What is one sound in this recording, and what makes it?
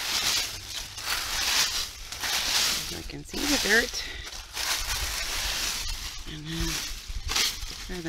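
Dry leaves rustle and crunch as a hand digs through them.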